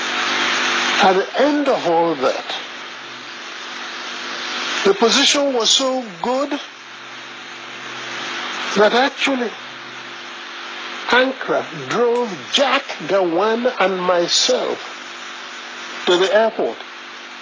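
A middle-aged man speaks with animation in short bursts, close up.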